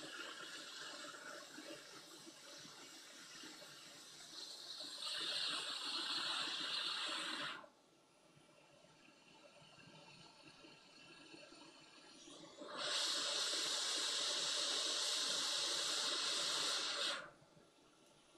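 A hot air blower hisses steadily in bursts.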